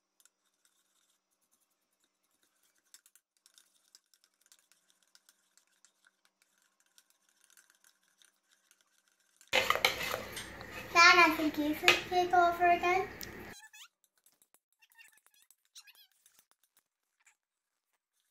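A spoon scrapes and taps in a mixing bowl.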